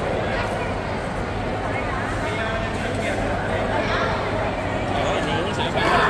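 Many voices murmur in a large echoing hall.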